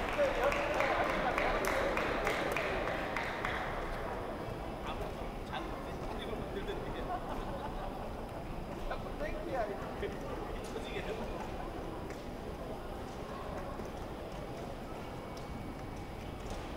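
Fencers' shoes tap and scuff on a fencing piste.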